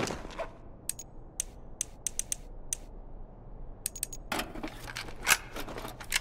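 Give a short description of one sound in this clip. Menu sounds click as options are selected.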